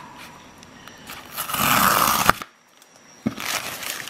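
Tape is peeled off a cardboard package.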